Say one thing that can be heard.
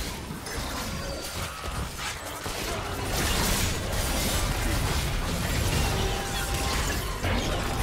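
Video game spell effects whoosh and crackle during a fast battle.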